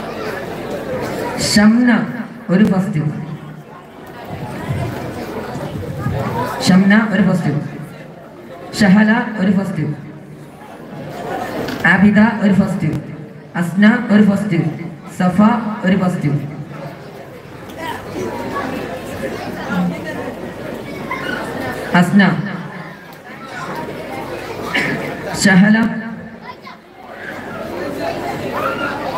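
A man speaks with animation through a loudspeaker outdoors, his voice echoing.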